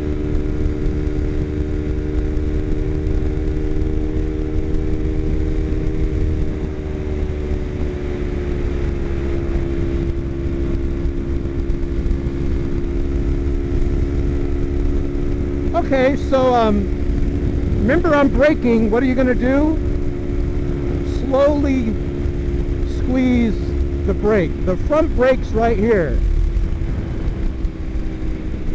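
A motorcycle engine hums steadily while cruising.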